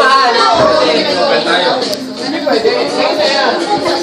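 Young women laugh close by.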